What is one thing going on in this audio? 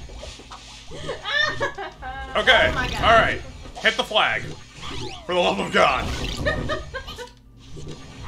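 A young woman laughs and talks through a microphone.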